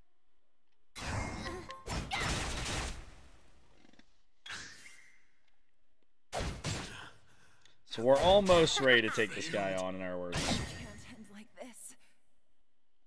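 Sword slashes and magic blasts ring out in a game battle.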